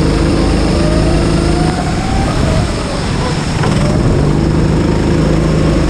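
A go-kart engine buzzes loudly up close, its pitch dipping and rising.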